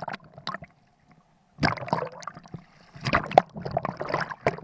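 Waves slosh and splash close by.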